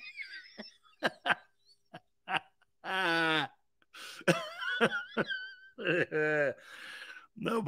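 A middle-aged man laughs loudly and heartily.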